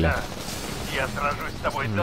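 A gun fires a burst of shots.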